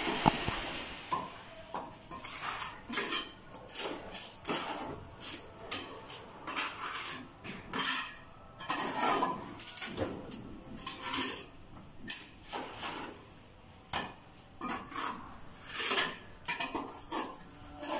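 A trowel scrapes and slaps wet plaster against a wall.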